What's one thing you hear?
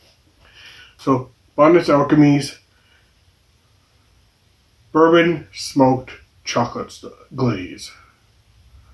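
A middle-aged man speaks calmly and close to a microphone, in short bursts.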